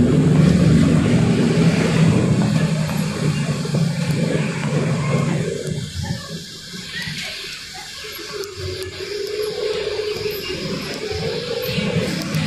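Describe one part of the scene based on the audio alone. A bus engine rumbles low and steady, then eases off as the bus slows.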